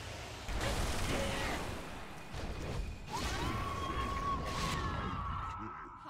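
Game weapon blows clang.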